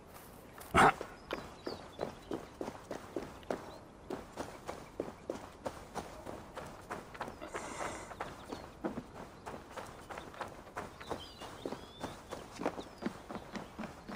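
Footsteps crunch on dirt and gravel outdoors.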